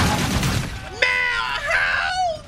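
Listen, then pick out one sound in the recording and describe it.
A young man shouts excitedly close to a microphone.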